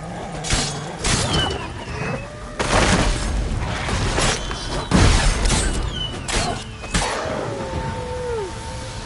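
Wolves snarl and yelp.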